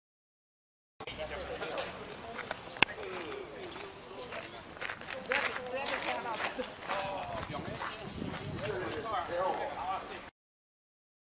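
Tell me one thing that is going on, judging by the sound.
Shoes tap and scuff on stone paving as a group walks.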